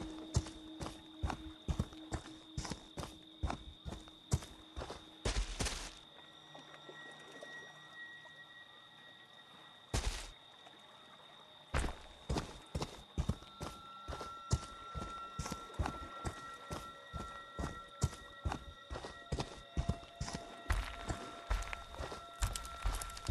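Heavy footsteps crunch steadily on a gravel path.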